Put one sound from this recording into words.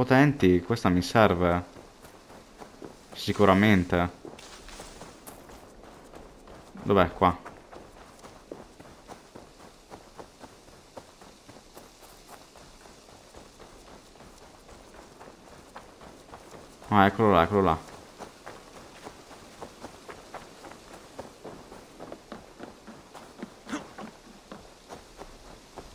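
Footsteps run over dirt and grass.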